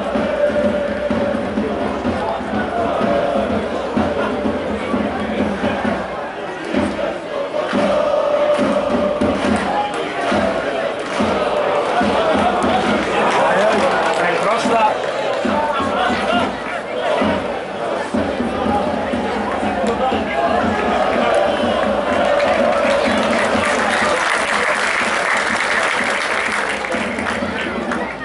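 A stadium crowd chants and cheers steadily outdoors.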